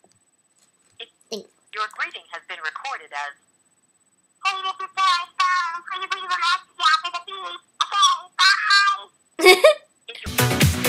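A teenage girl talks cheerfully up close.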